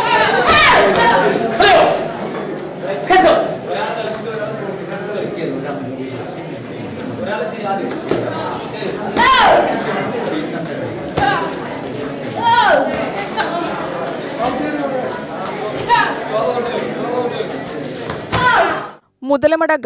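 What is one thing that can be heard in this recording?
Young children shout sharply as they spar.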